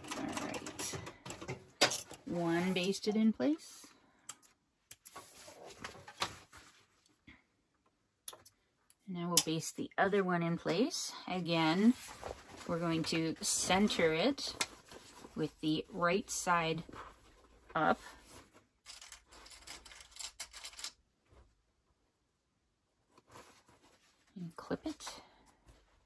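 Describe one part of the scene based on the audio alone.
Cloth rustles as hands handle it.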